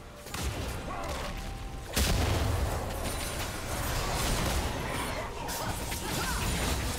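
Magic spells and weapon strikes clash in a busy fight, with sudden bursts and whooshes.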